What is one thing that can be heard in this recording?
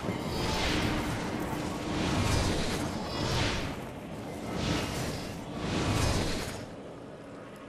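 Wind rushes past in loud gusts during a fast glide.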